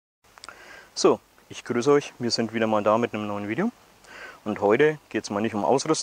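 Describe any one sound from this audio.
A man speaks calmly and clearly, close by, outdoors.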